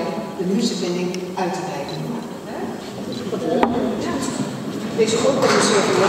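An elderly woman speaks over a microphone in a large echoing hall.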